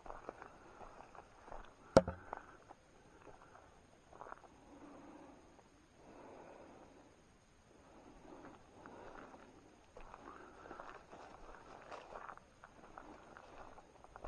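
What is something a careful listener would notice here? Leafy plants and tall grass rustle and swish as someone pushes through undergrowth.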